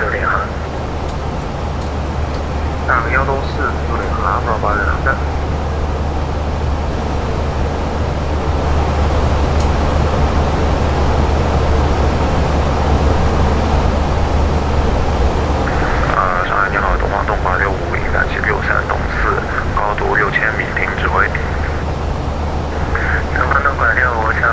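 Jet engines drone low and steadily.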